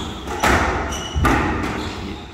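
A squash ball smacks hard against the walls, echoing in a large hall.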